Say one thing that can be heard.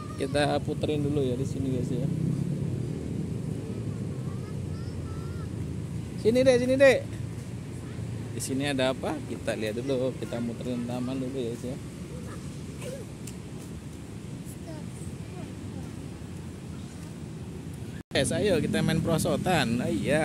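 Young people chatter and talk nearby outdoors.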